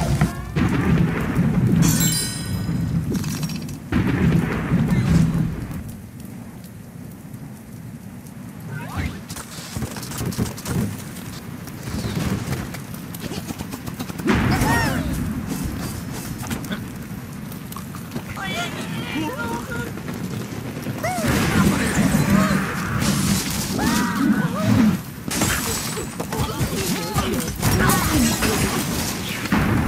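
Lively game music plays.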